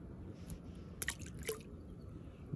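A small fish splashes into water.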